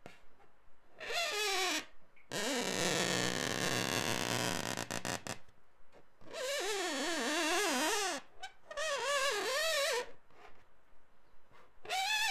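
A marker squeaks against a balloon's rubber.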